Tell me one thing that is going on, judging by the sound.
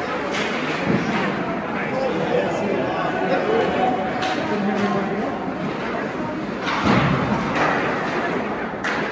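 Ice skates scrape and hiss on the ice in a large echoing rink.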